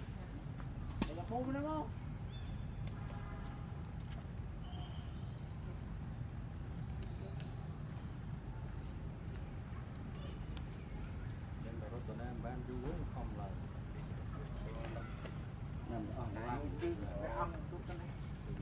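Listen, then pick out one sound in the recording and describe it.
A young monkey squeals in short, high cries nearby.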